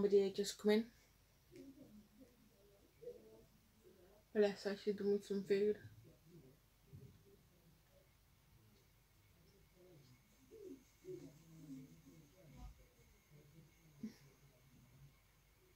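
A makeup brush brushes softly on skin.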